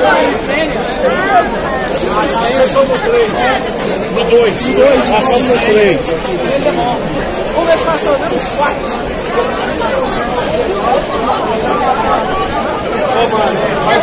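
Many people talk and shout at once in a dense crowd.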